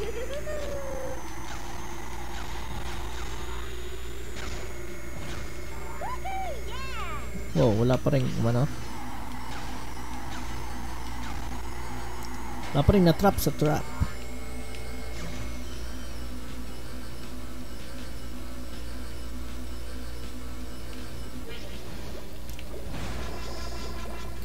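A kart engine drones steadily throughout a racing game.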